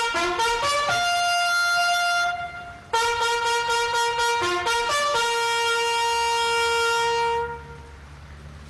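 A bugle plays a loud, clear call of held notes.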